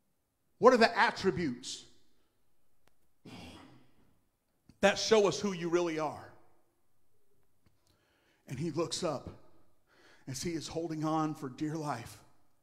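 A middle-aged man preaches with animation into a microphone, in bursts with pauses.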